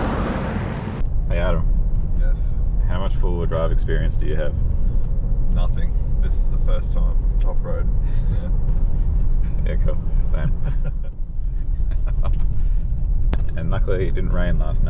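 Tyres crunch and rattle on a gravel road.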